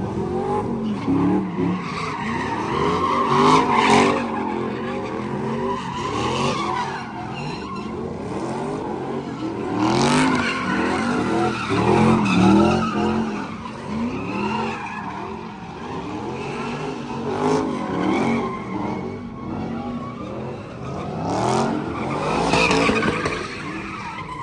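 Tyres screech and squeal on pavement.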